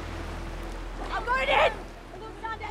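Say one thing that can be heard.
A young woman calls out loudly nearby.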